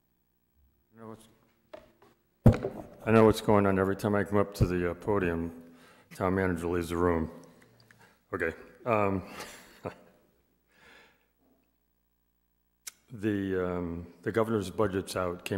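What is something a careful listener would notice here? An older man speaks calmly into a microphone over a loudspeaker, in a room with some echo.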